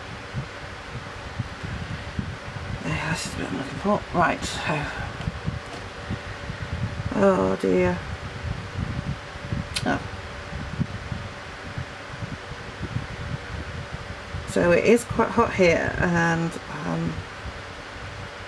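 A pencil scratches softly across paper.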